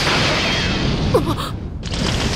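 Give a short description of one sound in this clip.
A boy shouts with excitement.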